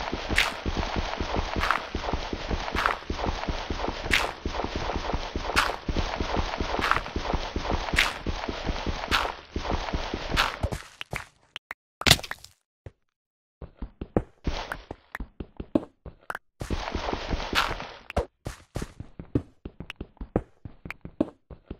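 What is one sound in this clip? A pickaxe chips at stone with repeated dull knocks and crumbling cracks.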